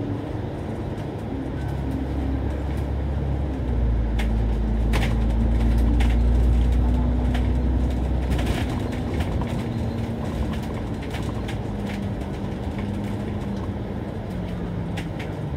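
A bus engine rumbles steadily as it drives, growing louder for a while and then easing.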